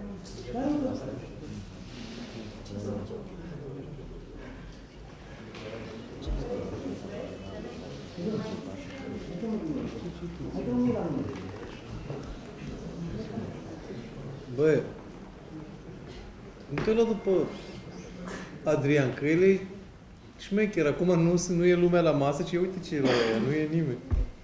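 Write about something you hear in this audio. A man speaks calmly into a microphone in a large, echoing room.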